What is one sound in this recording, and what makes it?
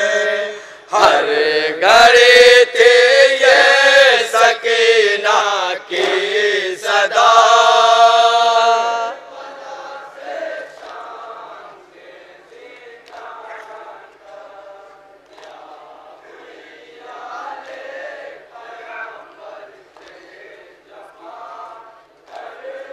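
Men chant loudly in unison through loudspeakers, outdoors.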